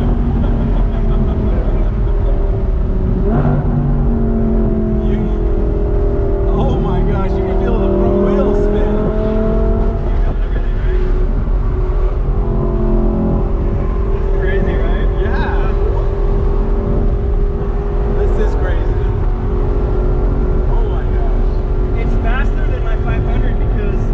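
A middle-aged man laughs loudly up close.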